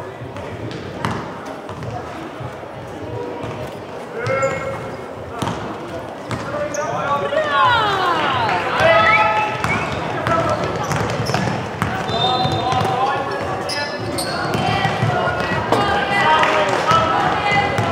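Young women shout and call out to each other across the hall.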